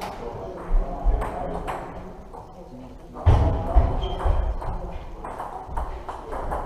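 Table tennis balls click and tap on tables and bats in a large echoing hall.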